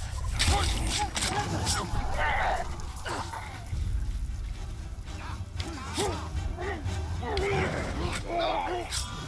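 Blows land with heavy thuds in a fight.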